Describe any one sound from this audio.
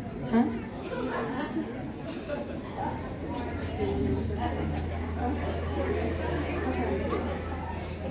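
A bass guitar plays a deep line.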